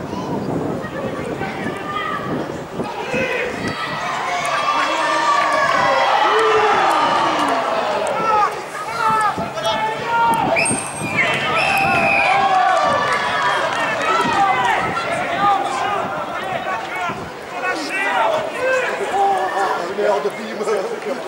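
Many men shout and call out across an open field.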